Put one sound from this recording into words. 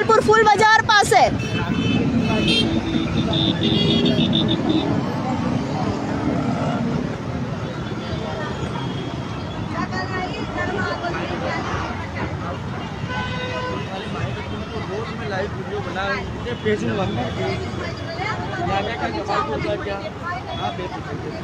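Auto-rickshaw engines putter nearby.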